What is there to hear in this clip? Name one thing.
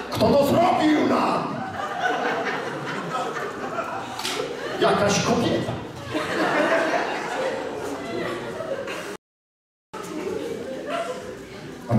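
A middle-aged man speaks with animation in a large echoing hall.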